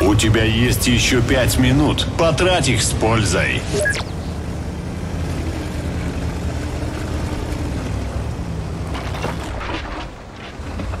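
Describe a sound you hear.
A tank engine rumbles low and steadily as the tank drives.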